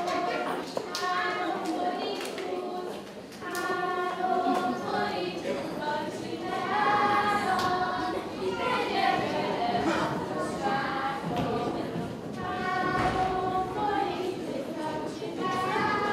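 Young children sing together.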